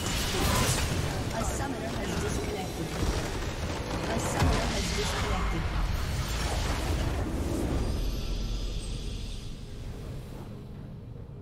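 Loud game blasts and crackling bursts ring out as a structure explodes.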